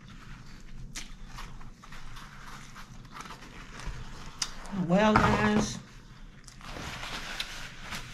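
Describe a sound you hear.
A paper towel rustles as it is torn off.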